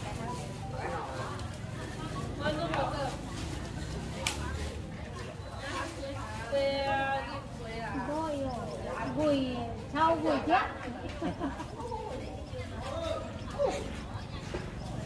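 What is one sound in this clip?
Women talk casually at close range.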